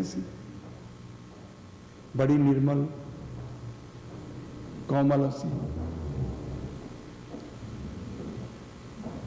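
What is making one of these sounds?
An elderly man speaks slowly and calmly, close to a microphone.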